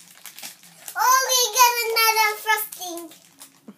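A young child laughs loudly and gleefully, close by.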